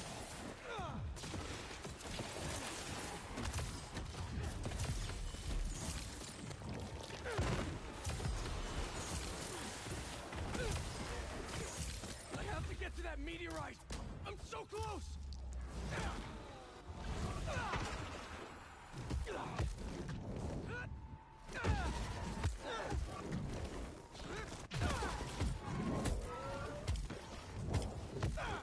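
Punches and kicks thud and smack in a fast fight.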